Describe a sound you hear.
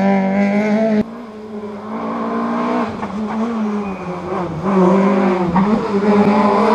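A car engine revs hard in the distance and draws nearer.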